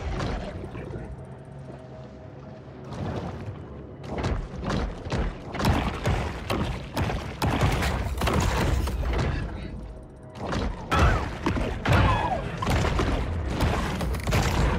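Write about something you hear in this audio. Underwater combat rumbles and thuds.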